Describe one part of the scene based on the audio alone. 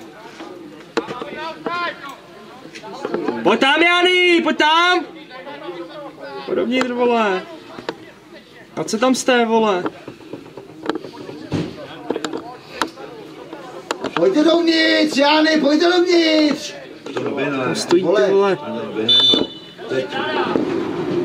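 Men shout and call out across an open playing field.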